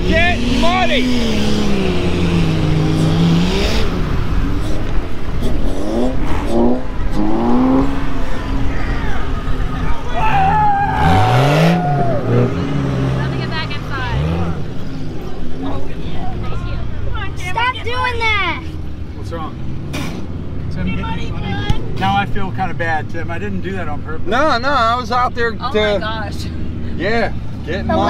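Engines rev loudly, rising and falling in pitch.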